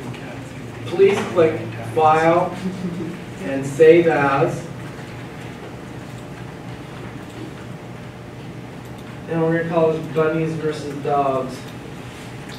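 An elderly man speaks calmly, heard through a microphone in a large room.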